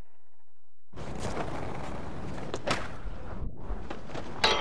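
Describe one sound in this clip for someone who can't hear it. Skateboard wheels roll over smooth stone.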